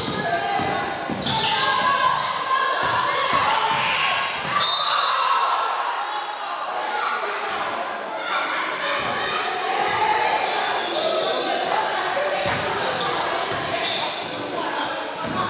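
Spectators cheer and shout in an echoing gym.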